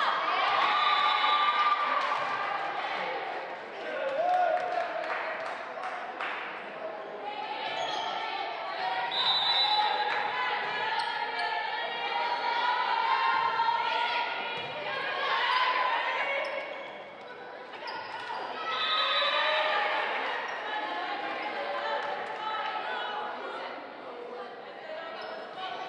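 Young women call out to each other on the court.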